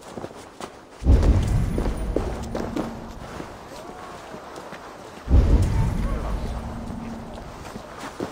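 Footsteps thud and scrape on stone.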